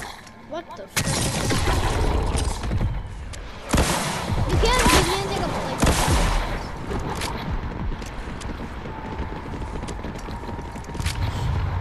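Explosions rumble and crackle.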